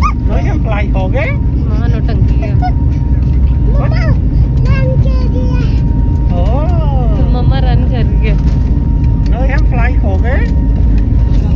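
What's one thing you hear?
A young girl babbles and squeals nearby.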